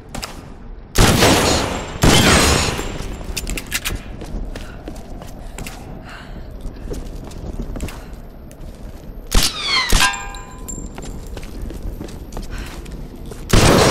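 A pistol fires loud shots that echo.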